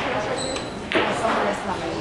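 A cue strikes a ball with a sharp tap.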